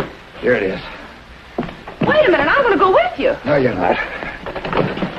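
A woman speaks with feeling.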